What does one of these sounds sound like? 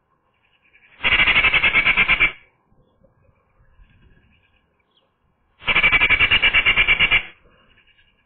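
A Eurasian magpie gives a harsh rattling chatter close by.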